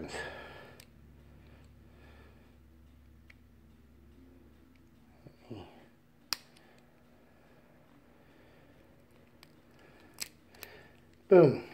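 Small plastic parts click as a man's hands fiddle with them.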